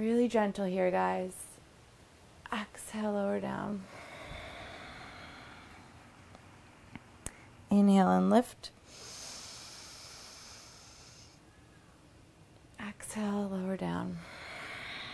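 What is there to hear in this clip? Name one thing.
A young woman speaks calmly and slowly, close to a microphone.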